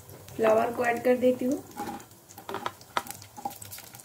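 Pieces of cauliflower drop into a pan with soft thuds.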